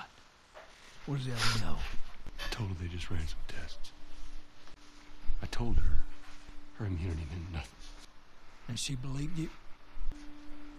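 A man asks a question in a low, quiet voice.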